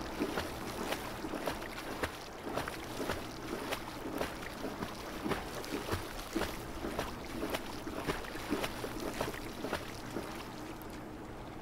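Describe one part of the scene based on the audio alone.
Water splashes in steady rhythmic strokes as someone swims.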